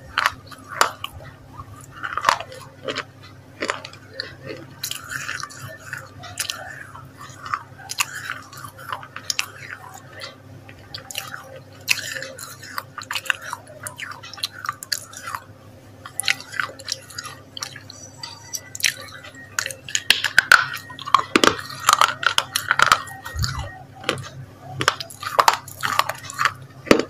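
A young woman chews and eats noisily close to a microphone.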